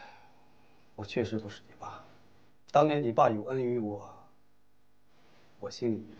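A man speaks calmly and earnestly close by.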